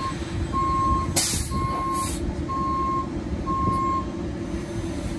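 A bus beeps in a steady, repeating pattern.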